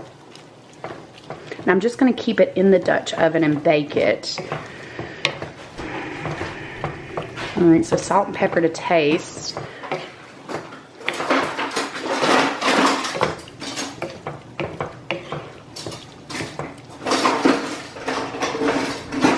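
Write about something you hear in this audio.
A wooden spoon scrapes and stirs food in an iron pan.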